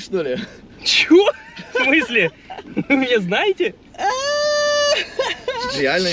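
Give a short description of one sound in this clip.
Young men laugh loudly.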